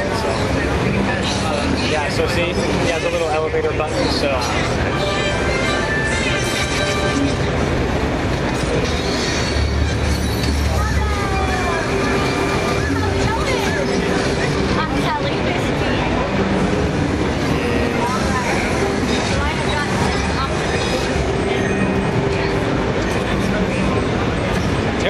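Video game music and effects play through a loudspeaker.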